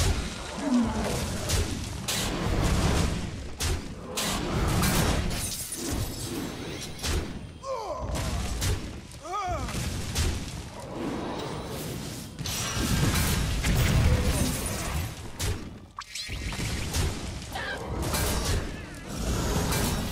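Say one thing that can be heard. Game cards clash and burst with magical sound effects.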